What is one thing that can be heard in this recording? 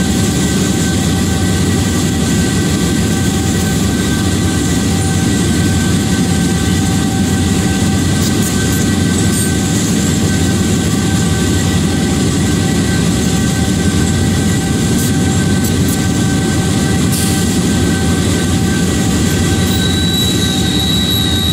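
Train wheels clatter and hum on the rails.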